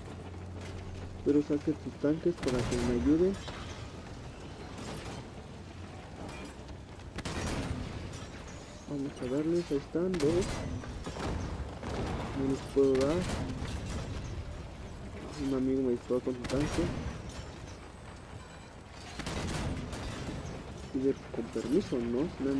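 A heavy vehicle-mounted gun fires in rapid bursts.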